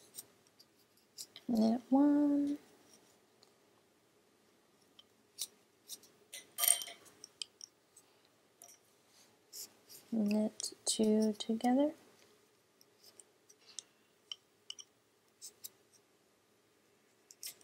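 Wooden knitting needles click and tap softly against each other.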